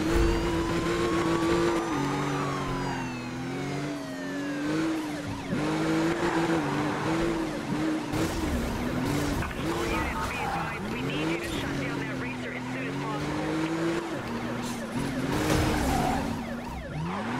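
A powerful car engine roars and revs up and down as gears change.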